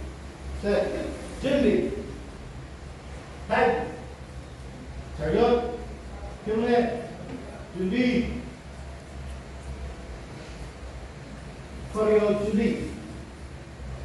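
A woman shouts short commands in an echoing room.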